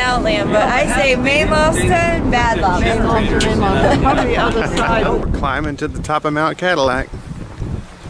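A woman talks cheerfully and with animation close to a microphone.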